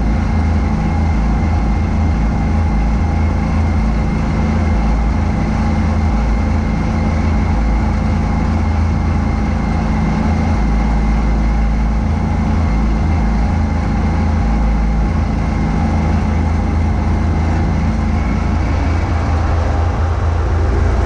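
Snow sprays and hisses out of a snowblower chute.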